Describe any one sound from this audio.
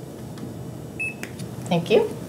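A handheld scanner beeps once.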